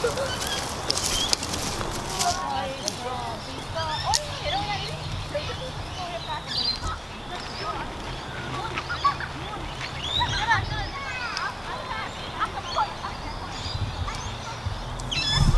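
Children chatter and call out at a distance outdoors.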